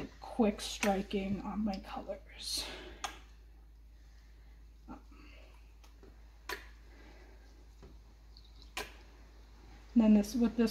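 A squeeze bottle squirts liquid with soft spurts.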